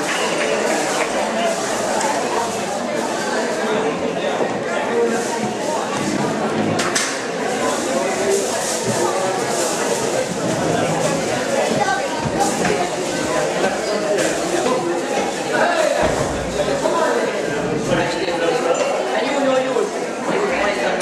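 A crowd of men and women chatters throughout a large room.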